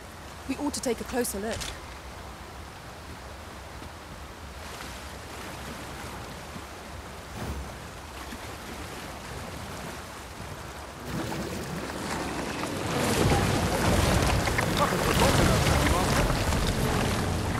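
A waterfall roars, growing louder and closer.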